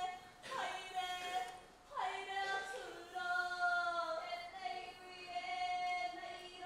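A young woman sings a solo, loud and emotional, heard in a large hall.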